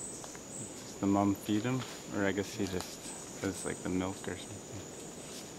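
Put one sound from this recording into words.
A monkey makes a series of lower hooting calls.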